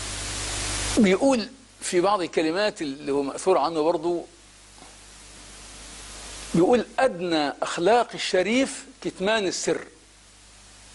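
An older man speaks with animation into a close microphone, in short bursts with pauses.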